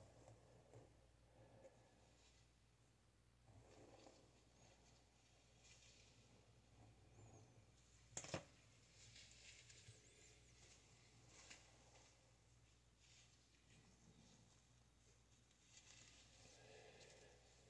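A brush softly dabs and strokes through hair.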